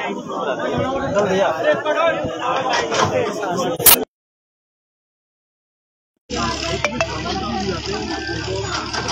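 A crowd of men and women talk loudly and all at once nearby, outdoors.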